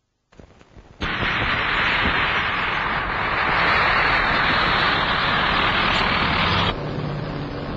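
A low-flying plane's engine roars close by.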